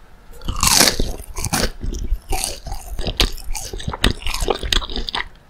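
A woman chews crunchy food noisily close to the microphone.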